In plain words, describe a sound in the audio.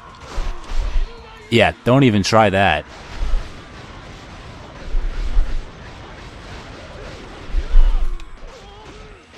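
Fiery blasts boom with deep thuds.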